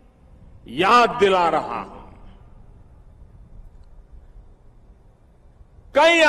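An elderly man speaks forcefully into a microphone, with pauses.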